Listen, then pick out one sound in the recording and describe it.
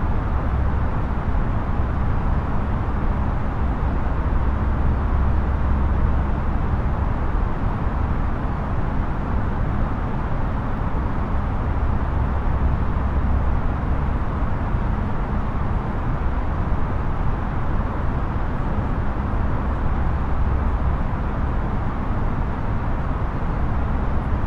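Airliner engines hum with a steady low drone in cruise flight.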